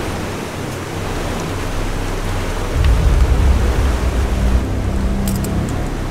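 A boat engine rumbles steadily, outdoors in wind.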